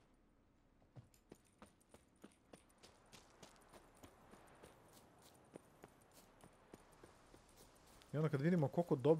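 Footsteps crunch steadily through undergrowth.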